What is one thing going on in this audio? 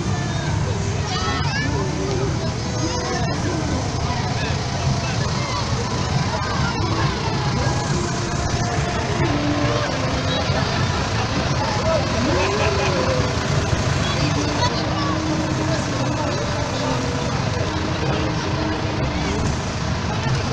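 A tractor engine rumbles close by.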